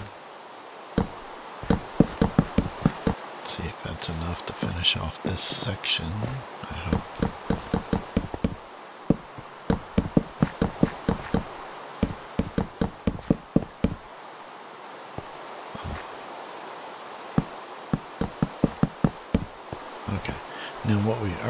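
Quick footsteps knock on wooden boards.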